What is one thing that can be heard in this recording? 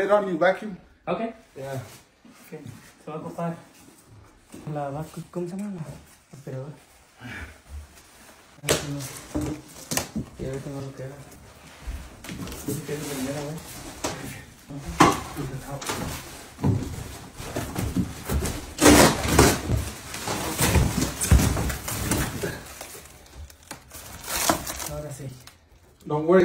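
Cardboard and plastic wrapping rustle and scrape as a large box is pulled open.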